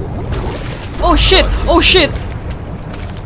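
A fire bursts up with a loud roaring whoosh.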